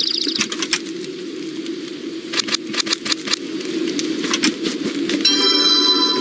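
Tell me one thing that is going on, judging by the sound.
Game menu clicks tick several times.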